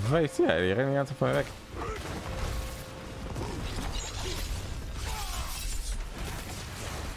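Spell blasts rumble and crackle in battle.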